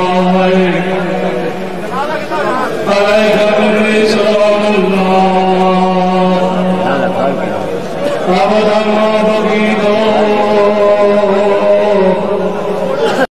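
A crowd of men chants loudly in unison.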